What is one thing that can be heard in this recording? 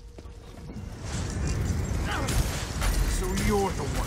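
Magic spells crackle and boom in a fight.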